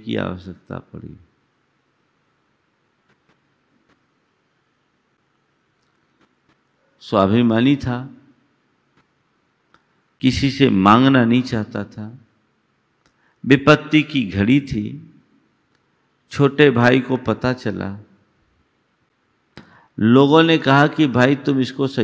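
An elderly man speaks calmly and deliberately into a close microphone, with long pauses.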